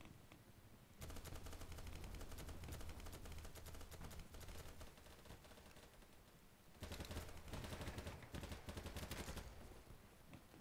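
Rapid rifle gunfire crackles in bursts.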